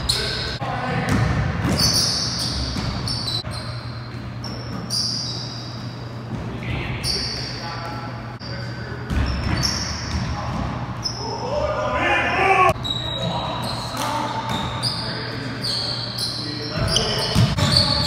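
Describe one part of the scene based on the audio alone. Men shout and call out to each other during play.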